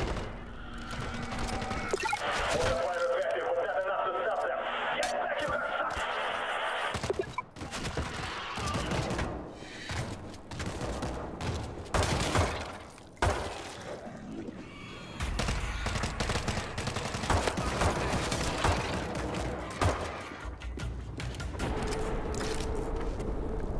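Pistol shots crack one after another.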